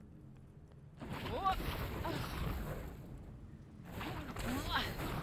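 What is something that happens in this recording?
A burst of fire roars and crackles.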